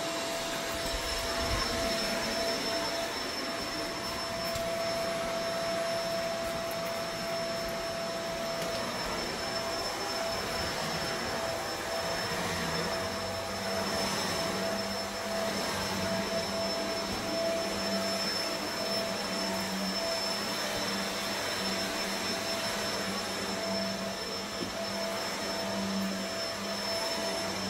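A vacuum cleaner hums steadily close by.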